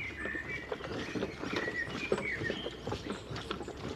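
Soldiers' boots tramp in step.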